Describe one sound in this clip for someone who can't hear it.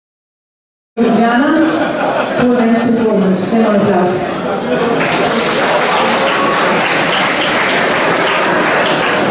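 A woman sings into a microphone over loud live music.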